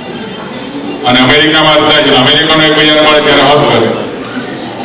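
A man chants loudly through a microphone in a large echoing hall.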